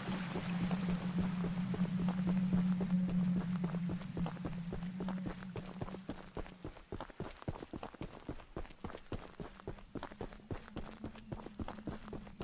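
Footsteps crunch through dry grass and gravel.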